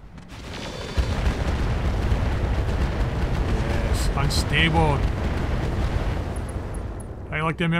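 A laser beam blasts a vehicle with a deep, steady rumbling roar.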